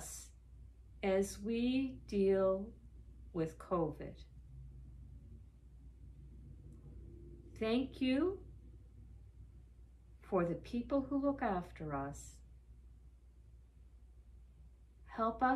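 A middle-aged woman speaks calmly and slowly in pauses, close by.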